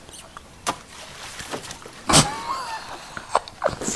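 Water splashes as a woman steps down into a deep puddle.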